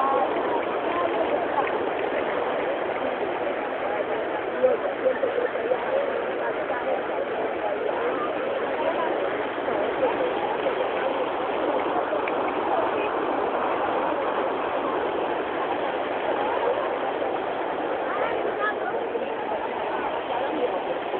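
Water from a fountain rushes and splashes steadily.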